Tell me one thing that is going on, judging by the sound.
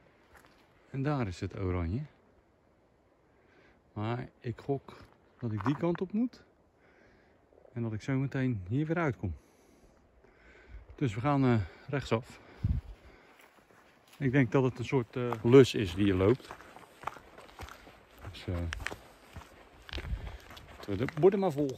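A middle-aged man talks calmly, close to a microphone.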